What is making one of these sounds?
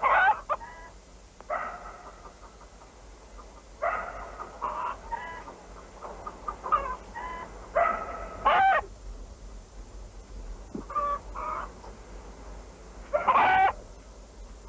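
A hen clucks and squawks loudly nearby.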